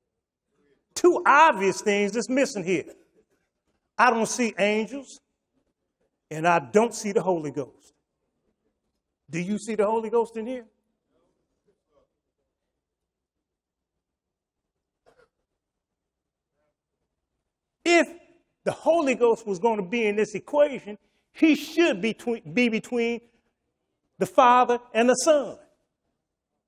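An older man speaks calmly through a microphone, in short phrases with pauses.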